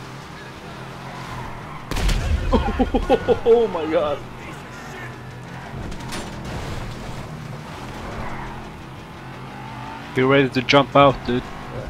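Tyres skid on dirt.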